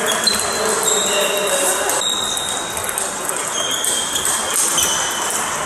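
Sports shoes squeak on a hall floor.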